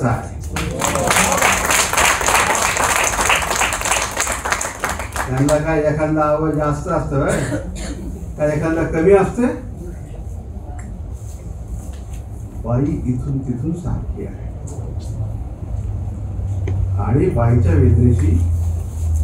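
A middle-aged man speaks with animation into a microphone in an echoing hall.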